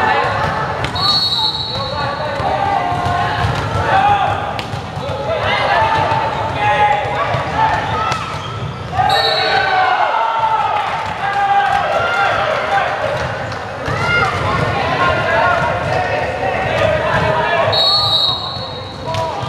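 A referee's whistle blows short sharp blasts.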